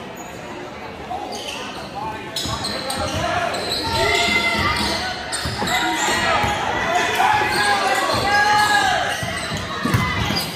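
Spectators in the stands shout and cheer.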